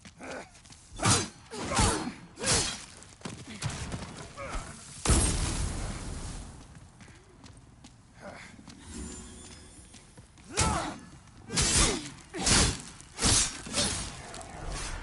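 Swords clash and slash in quick, loud bursts.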